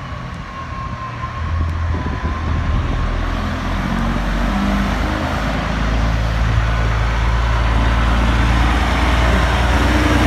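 A large truck engine rumbles loudly as it approaches and turns close by.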